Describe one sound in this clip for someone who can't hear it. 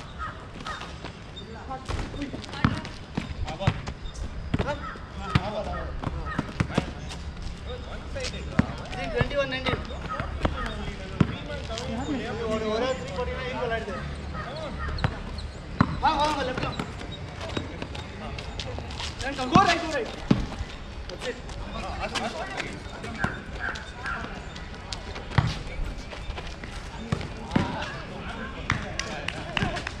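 Young men shout and call out to each other during play.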